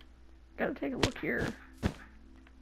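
A block breaks with a short crunch.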